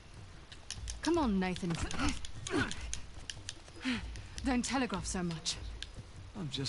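A woman speaks taunting and confident, close by.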